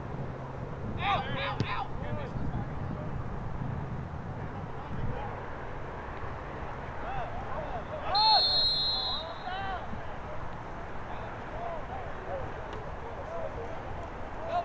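Young players shout to each other across an open field.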